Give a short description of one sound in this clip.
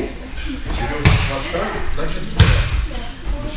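A body thuds onto a padded mat.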